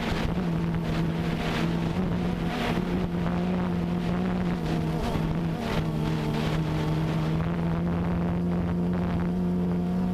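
A drone's propellers buzz and whine steadily up close.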